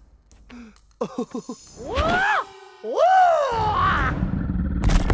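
A man yells playfully with excitement.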